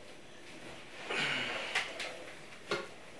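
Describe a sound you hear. A chair scrapes and bumps on the floor.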